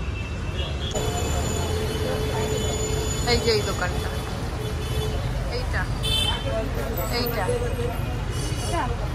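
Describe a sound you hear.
Men and women chatter nearby as they pass.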